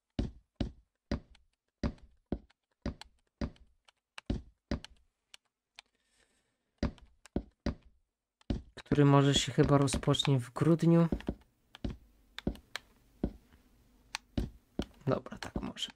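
Wooden blocks thud into place one after another.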